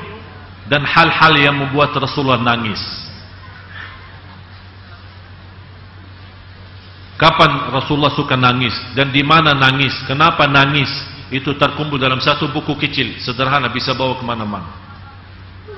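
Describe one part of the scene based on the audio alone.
A man speaks with animation through a microphone, his voice filling an echoing hall.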